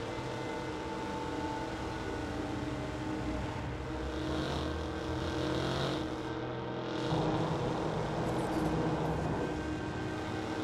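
A car engine roars steadily as the car speeds along a road.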